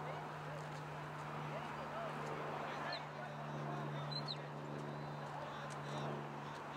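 Distant voices of players and onlookers call out across an open field outdoors.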